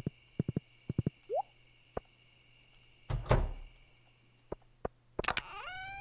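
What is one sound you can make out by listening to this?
Light footsteps tap on a hard path.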